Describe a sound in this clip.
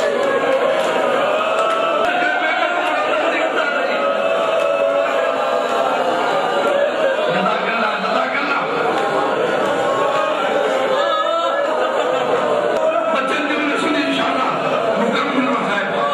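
A middle-aged man speaks with animation through a microphone and loudspeakers in an echoing hall.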